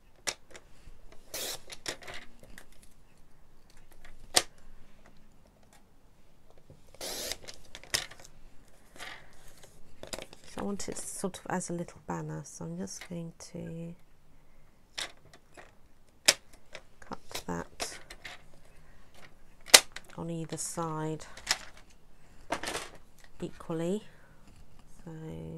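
Paper rustles and slides as hands move it around.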